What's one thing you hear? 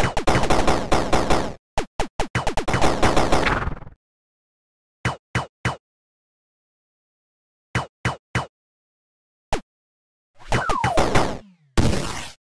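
Retro video game laser shots fire in quick bursts.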